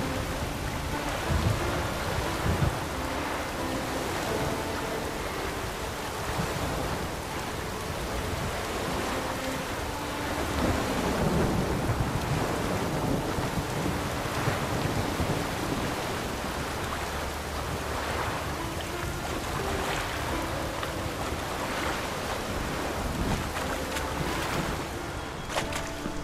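Water splashes steadily as a man swims through it.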